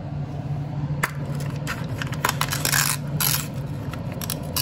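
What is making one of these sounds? A small loudspeaker crackles and clicks as a metal tip pokes it.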